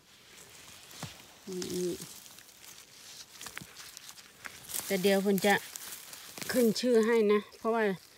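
Dry moss and leaves rustle under a gloved hand.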